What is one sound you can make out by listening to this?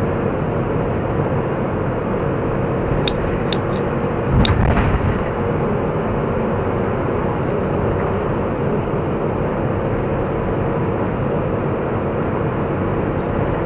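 Tyres roll on asphalt with a steady road noise.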